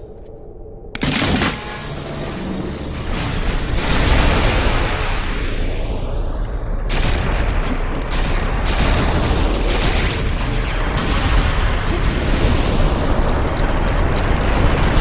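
A heavy stone platform rumbles and grinds as it rises.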